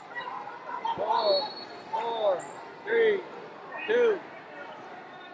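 Spectators shout encouragement loudly in an echoing hall.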